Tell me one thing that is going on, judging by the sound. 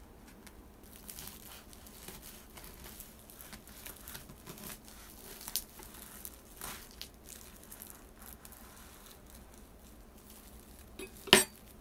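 Plastic wrap crackles as a knife cuts through it.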